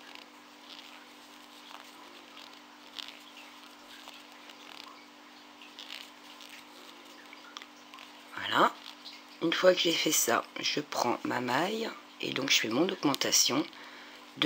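Yarn rustles softly between fingers.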